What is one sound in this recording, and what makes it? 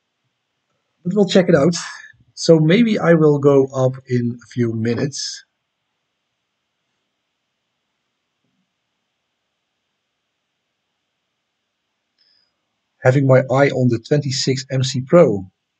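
A man speaks calmly and close to a microphone, with long pauses.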